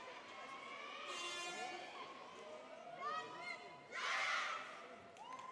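A crowd cheers and screams.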